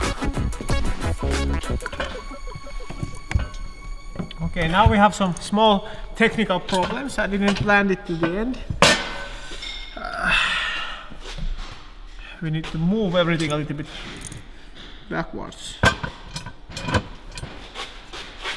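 Metal parts clink and knock as they are handled.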